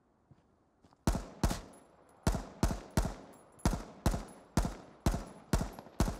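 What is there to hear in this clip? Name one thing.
A rifle fires a series of sharp, evenly spaced shots.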